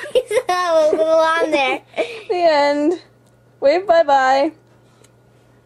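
A woman sings in a high, silly voice close by.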